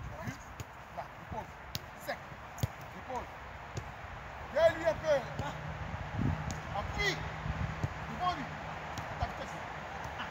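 A football is kicked with dull thuds outdoors.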